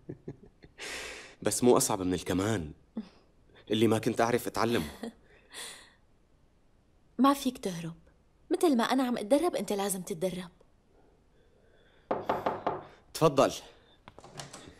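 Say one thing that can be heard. A young man speaks softly and warmly up close.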